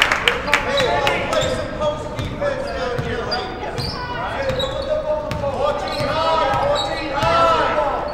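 A basketball bounces on the wooden floor.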